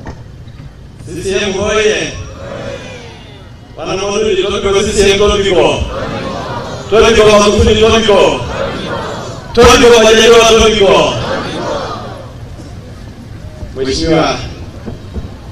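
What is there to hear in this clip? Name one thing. A man speaks loudly through a microphone over loudspeakers, his voice echoing outdoors.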